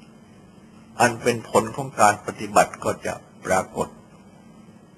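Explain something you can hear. An elderly man speaks calmly and slowly.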